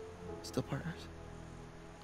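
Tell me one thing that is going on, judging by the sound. A young man speaks softly and apologetically.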